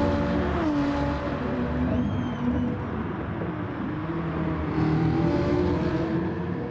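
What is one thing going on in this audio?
Racing car engines roar and change pitch as the cars shift gears.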